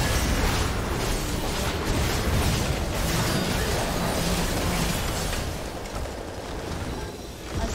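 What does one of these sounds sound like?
Game spell effects crackle and boom in a busy battle.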